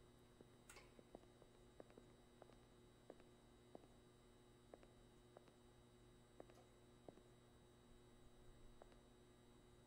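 Footsteps tap steadily on a hard tiled floor.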